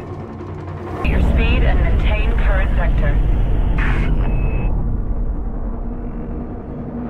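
A spacecraft engine hums with a deep, steady rumble.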